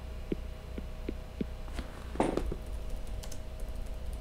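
Keys click on a keyboard in quick taps.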